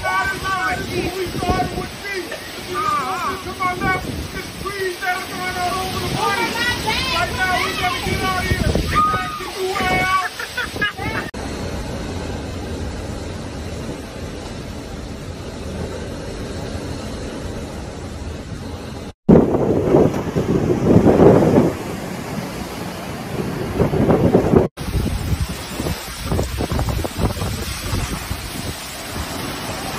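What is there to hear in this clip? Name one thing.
Strong wind roars and gusts.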